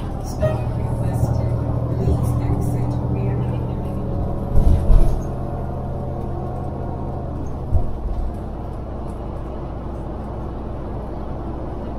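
Tyres roll over the road surface.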